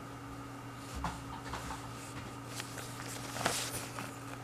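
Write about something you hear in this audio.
Paper rustles as it is lifted.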